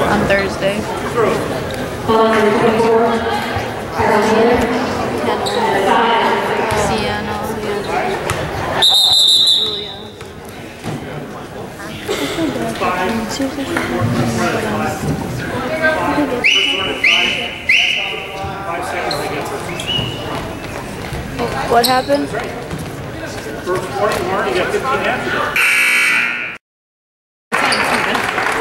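Spectators chatter and cheer in a large echoing gym.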